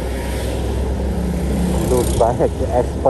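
A motorbike rides past close by.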